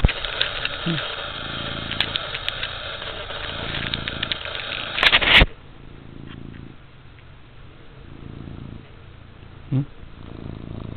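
A cat meows close by.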